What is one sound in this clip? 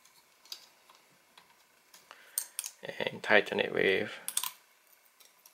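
Plastic parts click and rattle as they are handled up close.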